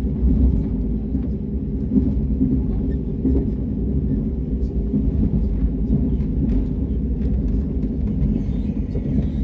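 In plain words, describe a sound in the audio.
A vehicle rumbles low and steadily while moving.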